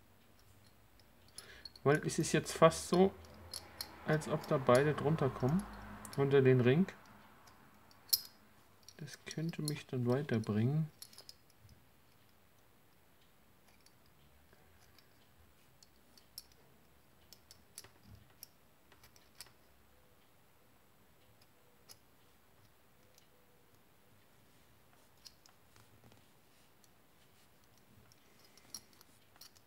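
A small metal buckle clicks and taps softly.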